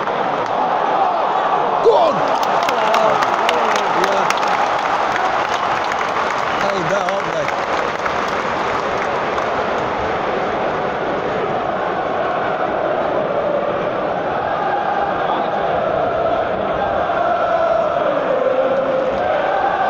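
A large stadium crowd roars and chants throughout.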